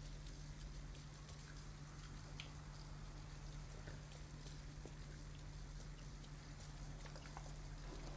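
Footsteps tap softly on pavement.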